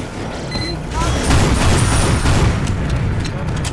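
Flames roar from a flamethrower.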